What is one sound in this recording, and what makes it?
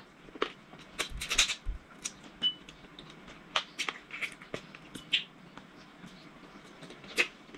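A woman chews and smacks her lips up close.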